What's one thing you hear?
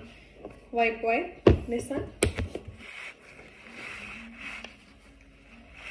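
Paper rustles and crinkles on a table.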